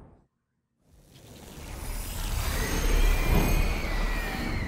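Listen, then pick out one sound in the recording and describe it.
Electric energy crackles and swells.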